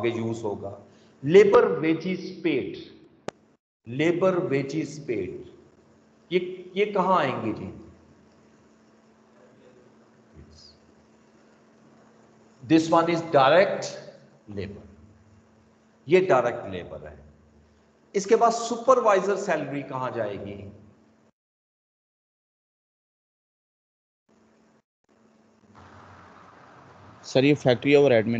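A man speaks calmly into a microphone, heard through an online call, in short bursts with pauses.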